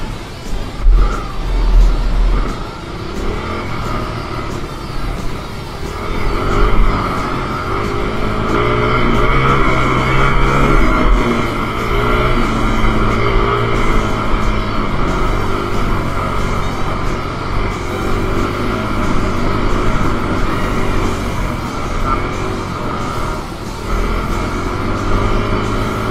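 A dirt bike engine revs and drones up and down close by.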